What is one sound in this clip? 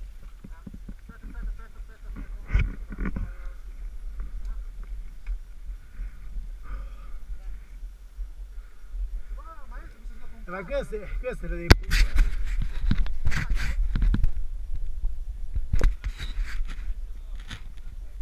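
Men talk casually outdoors nearby.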